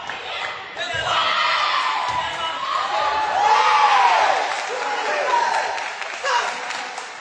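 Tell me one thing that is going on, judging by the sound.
Young men shout excitedly after a point.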